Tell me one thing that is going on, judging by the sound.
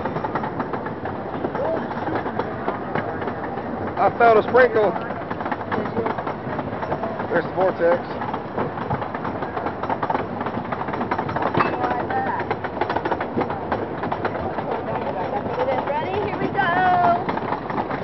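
A wooden roller coaster clatters and rattles along its track.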